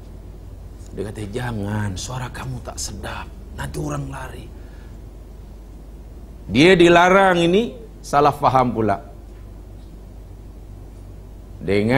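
A middle-aged man speaks calmly into a microphone, in short bursts with pauses.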